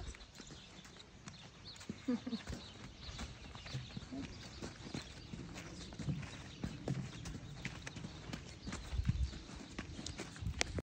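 Hooves thud softly on dirt as a horse walks.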